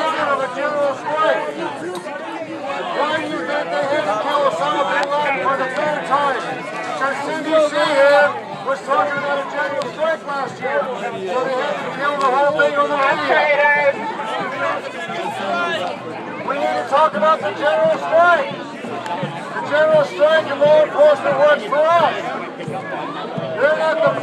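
Many people talk over one another close by.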